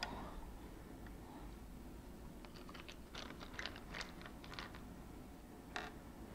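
Small wooden pieces tap lightly onto a table.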